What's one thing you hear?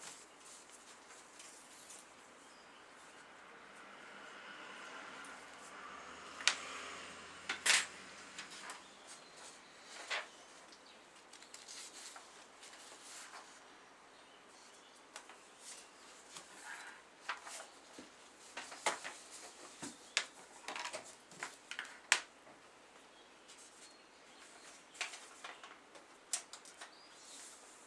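Small objects click and tap as hands work close by.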